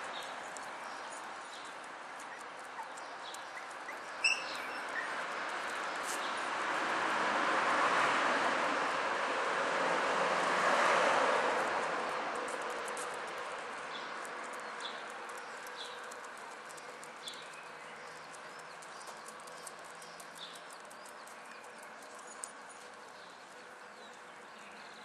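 Puppies whimper and squeak softly close by.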